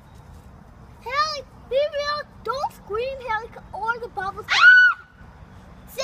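A young boy talks in a high voice.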